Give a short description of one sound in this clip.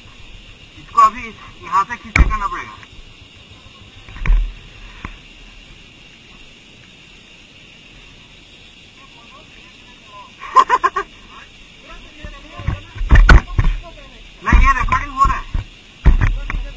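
Men talk and laugh nearby, outdoors.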